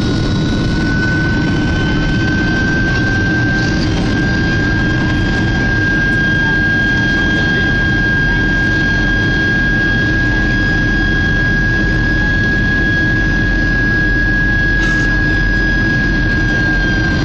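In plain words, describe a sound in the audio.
A jet engine roars steadily with a high, constant whine.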